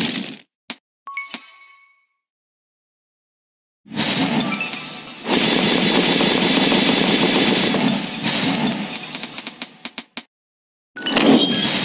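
Cheerful game chimes and pops ring out as tiles match and burst.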